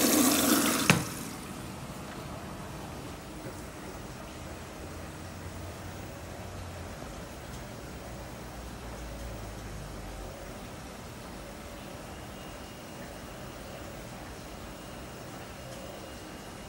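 Laundry tumbles in the drum of a commercial front-loading washing machine.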